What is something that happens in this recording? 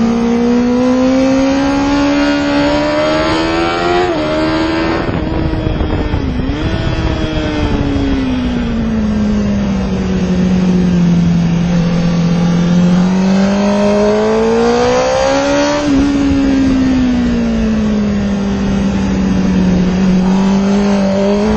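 A motorcycle engine roars loudly, its pitch rising and falling as it shifts gears.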